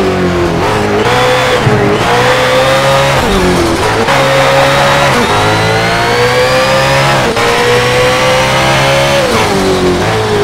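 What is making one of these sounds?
A racing car engine roars loudly, revving up through the gears with short drops between shifts.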